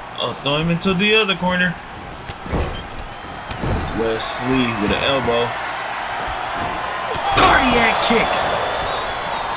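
Bodies slam heavily onto a wrestling mat.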